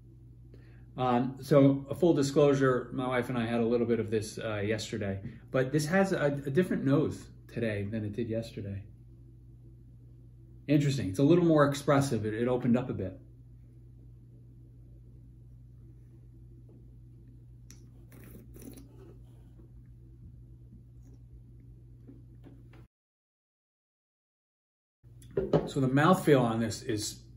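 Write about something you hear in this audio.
A middle-aged man talks calmly and close by, as if to the listener.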